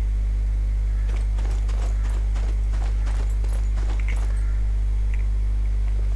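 Footsteps clatter over roof tiles.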